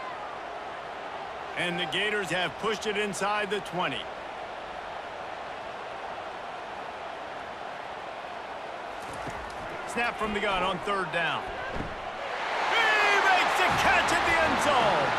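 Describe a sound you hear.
A large crowd cheers and roars loudly in a stadium.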